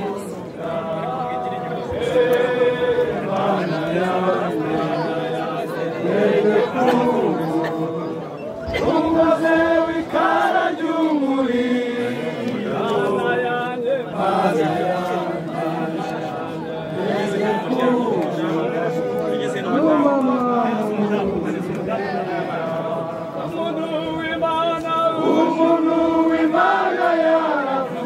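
A crowd of mourners sings a slow hymn outdoors.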